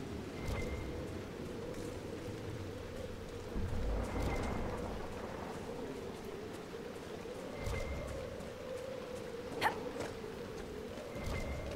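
Armoured footsteps tramp on grass.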